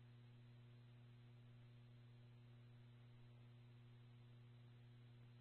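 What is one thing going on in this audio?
A radio scanner feed plays steady static hum through a phone.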